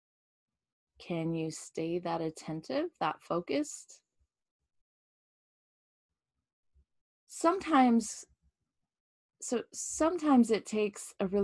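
A middle-aged woman speaks calmly and expressively into a close microphone, pausing between phrases.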